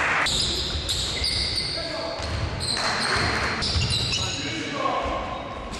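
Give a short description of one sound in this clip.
Basketball sneakers squeak on a hardwood court in a large echoing hall.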